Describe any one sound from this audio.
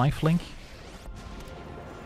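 A magical whoosh swells and swirls.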